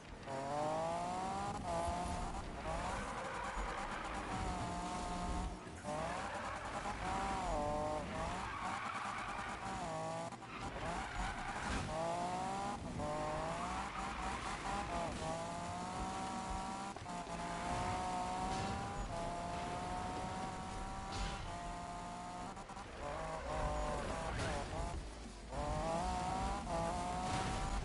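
A car engine roars loudly, revving up and dropping back repeatedly through gear changes.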